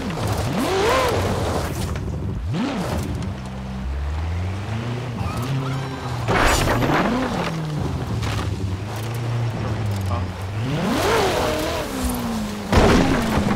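Tyres skid and scrape on gravel.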